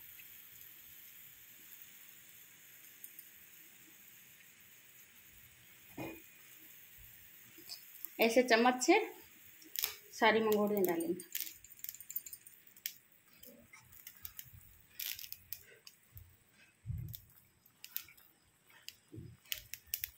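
Liquid bubbles and sizzles in a pot.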